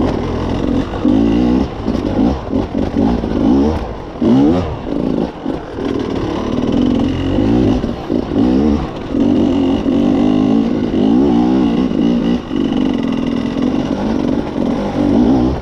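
A dirt bike engine revs up and down, close by.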